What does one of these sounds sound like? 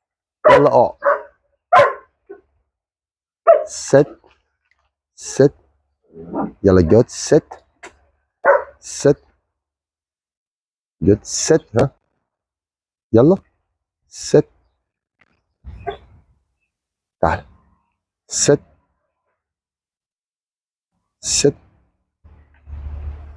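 A dog barks in short bursts.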